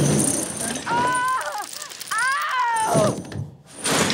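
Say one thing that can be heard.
A young woman screams in terror.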